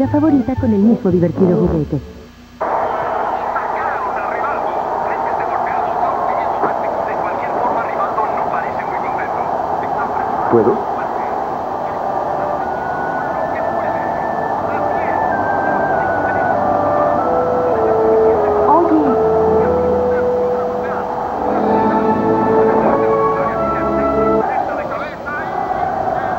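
A boy speaks quietly and nervously.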